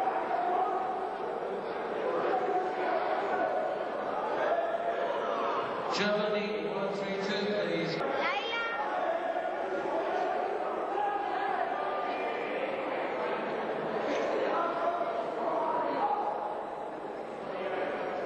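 A crowd chatters and calls out.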